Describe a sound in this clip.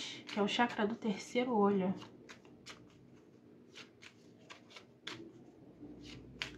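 Playing cards riffle and slap softly as they are shuffled by hand.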